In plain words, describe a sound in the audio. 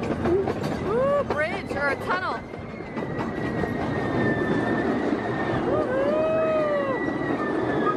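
A young girl squeals and shouts excitedly close by.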